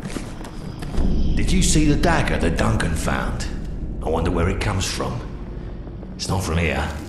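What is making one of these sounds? A man speaks in a deep voice, close by.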